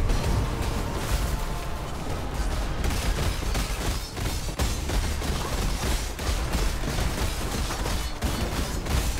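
Magic blasts crackle and burst in quick succession.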